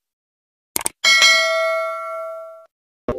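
A bell chimes brightly and slowly rings out.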